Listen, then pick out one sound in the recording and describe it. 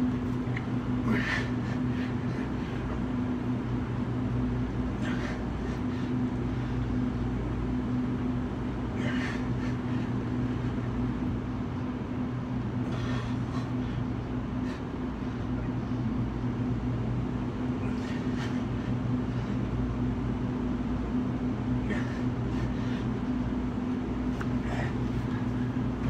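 A man exhales sharply and rhythmically with each push-up, close by.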